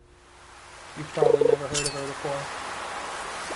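A bright chime rings out as a fish bites.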